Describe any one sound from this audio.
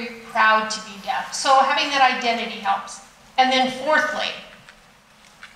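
A woman speaks with animation through a microphone in a large room.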